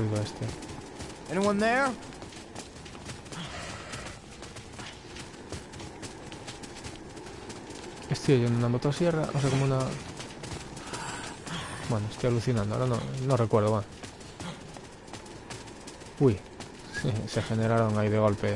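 Footsteps pad over grass.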